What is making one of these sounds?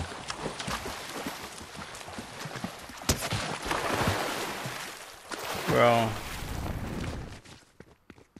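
Wind rushes loudly during a fall, then stops.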